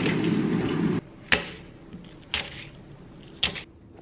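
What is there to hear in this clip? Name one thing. A knife slices through an apple.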